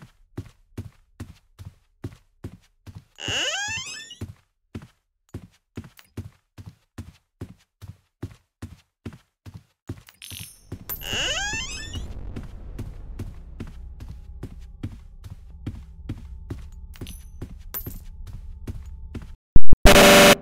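Footsteps tap steadily and evenly.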